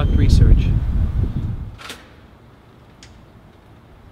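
A door opens and swings shut.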